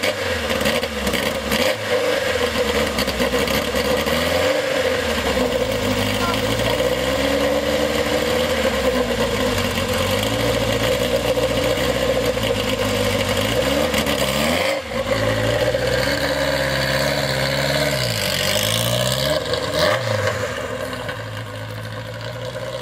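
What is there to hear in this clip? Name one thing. A car engine idles loudly with a deep, rumbling exhaust.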